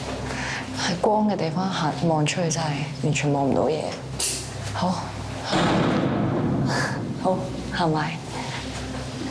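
A young woman speaks quietly and nervously close by.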